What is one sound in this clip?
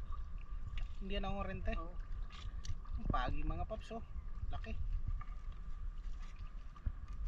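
Water laps against the side of a small wooden boat.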